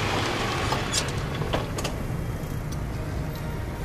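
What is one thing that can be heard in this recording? Clicks and knocks sound as a man handles a parked scooter.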